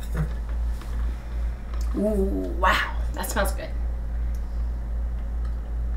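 A woman gulps water from a bottle.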